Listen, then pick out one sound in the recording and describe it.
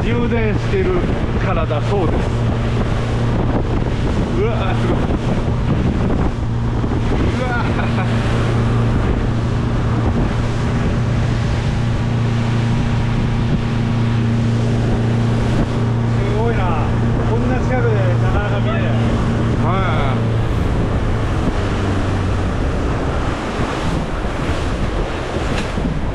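Wind blows past in the open air.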